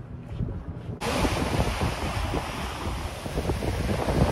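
Waves wash onto a beach with a steady rushing roar.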